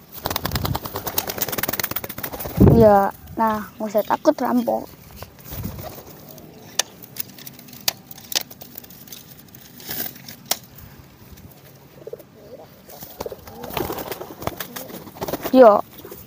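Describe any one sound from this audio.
A pigeon flaps its wings loudly.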